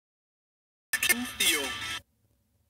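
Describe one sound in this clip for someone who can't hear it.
A boy shouts excitedly.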